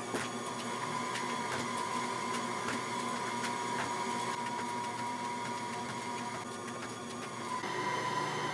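Eggs crack against the rim of a metal bowl.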